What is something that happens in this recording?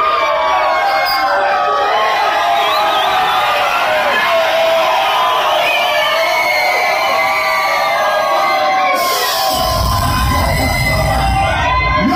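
Loud music plays through loudspeakers.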